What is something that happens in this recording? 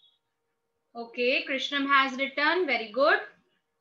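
A young girl speaks calmly and clearly, close by.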